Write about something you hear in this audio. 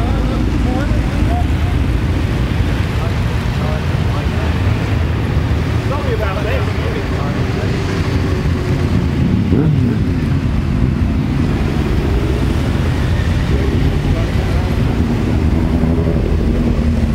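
Motorcycle engines rumble and rev as a line of bikes rolls slowly past.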